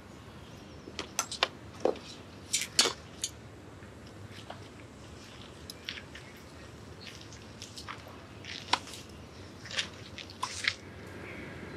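A bag rustles and clicks as a man handles it.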